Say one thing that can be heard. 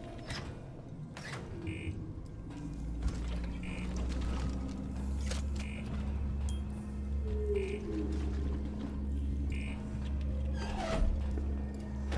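A metal lever clanks as a hatch is pulled.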